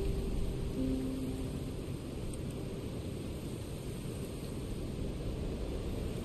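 Wind rustles through leafy trees outdoors.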